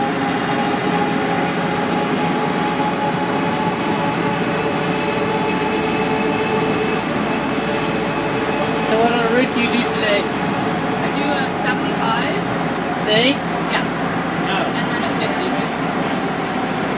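Road noise hums steadily inside a moving car.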